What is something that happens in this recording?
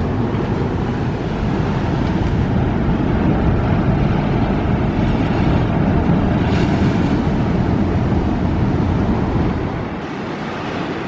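Strong wind rumbles outdoors.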